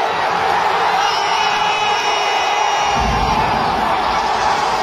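Men and women in the crowd scream with excitement.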